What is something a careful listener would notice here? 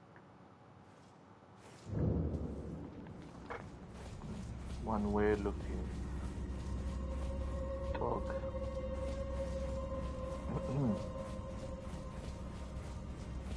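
Footsteps tap on stone in an echoing tunnel.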